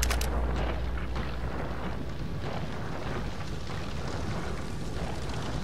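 Footsteps shuffle softly on a debris-strewn floor.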